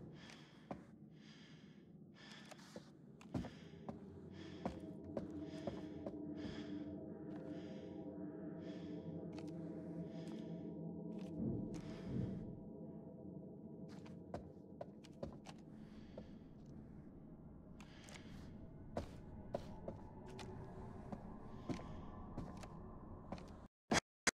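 Footsteps thud slowly on creaky wooden floorboards.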